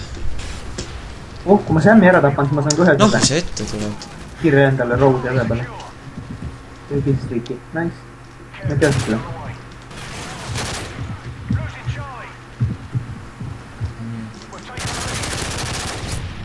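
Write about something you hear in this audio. Gunfire cracks in short rapid bursts.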